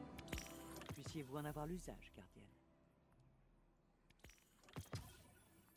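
Soft electronic menu tones chime and click.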